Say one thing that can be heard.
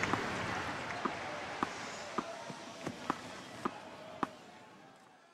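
A tennis ball bounces repeatedly on a hard court.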